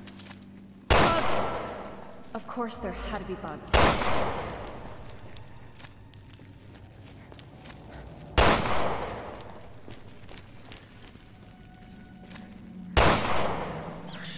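A pistol fires several loud shots that echo.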